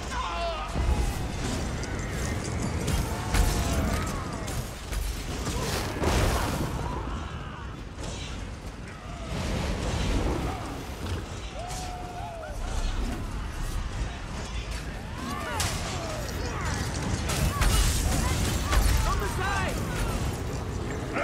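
Creatures screech and growl.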